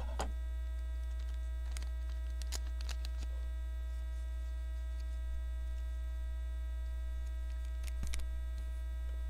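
Cards rustle and click as hands shuffle through them.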